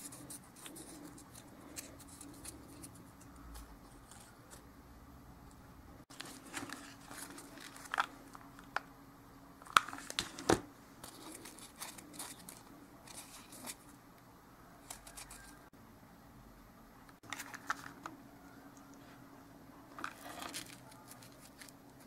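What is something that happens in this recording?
Foam sheets rustle and crinkle under fingers.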